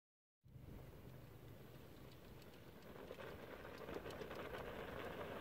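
Off-road quad bikes hum in the distance.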